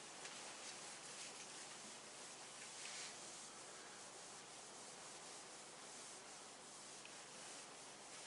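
A cloth rubs and wipes across a board.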